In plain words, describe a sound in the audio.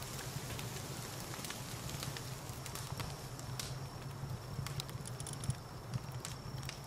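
A campfire crackles and pops steadily.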